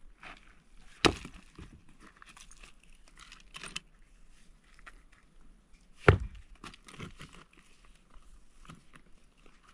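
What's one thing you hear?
Stones knock and clack sharply as they are set down on loose rubble.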